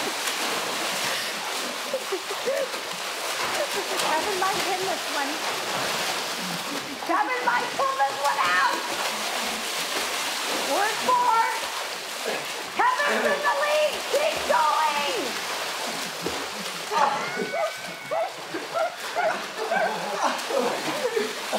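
Water splashes and churns loudly as two men wrestle in a pool.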